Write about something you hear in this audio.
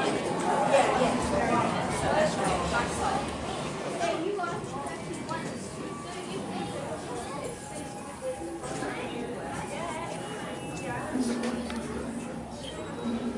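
A crowd of adults chatters nearby in an echoing hall.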